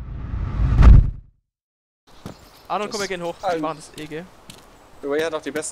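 Footsteps fall on a hard stone floor.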